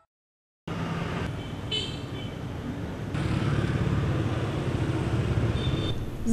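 Motorbikes and traffic hum along a street outdoors.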